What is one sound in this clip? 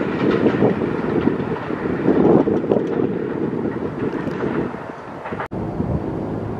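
A subway train rumbles and clatters along the tracks as it approaches.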